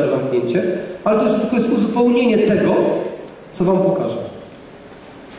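A man speaks with animation through a microphone over loudspeakers in a large echoing hall.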